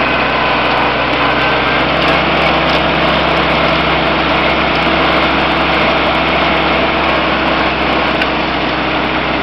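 A small tractor engine chugs loudly and steadily up close.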